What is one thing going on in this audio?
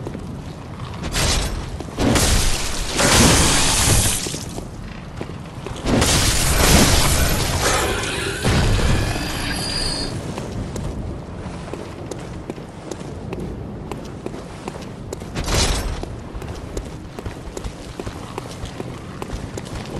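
Footsteps scuff across stone.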